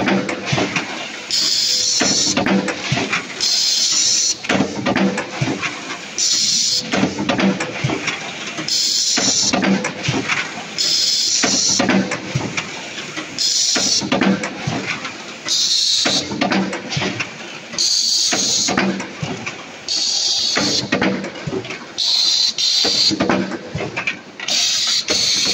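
A press machine thumps and hisses in a steady repeating cycle.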